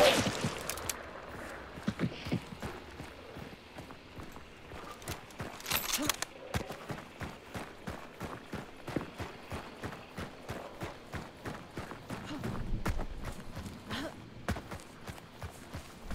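Footsteps crunch steadily over dirt and grass.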